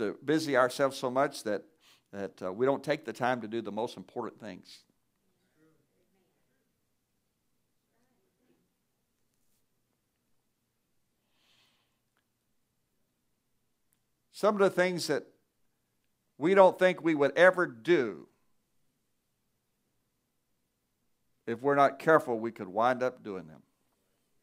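A man speaks calmly through a microphone, with long pauses between phrases.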